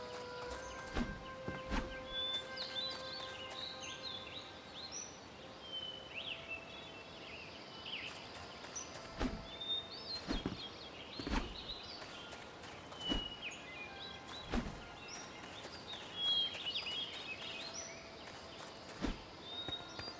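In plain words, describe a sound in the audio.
Game footsteps thud softly as a character jumps and lands on blocks.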